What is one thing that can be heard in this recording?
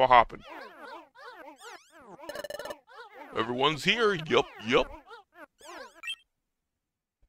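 Rapid electronic chirps and warbling creature cries ring out.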